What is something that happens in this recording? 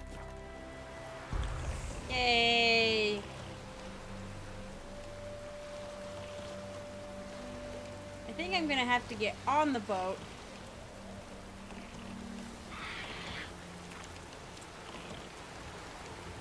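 Waves lap against a small wooden boat.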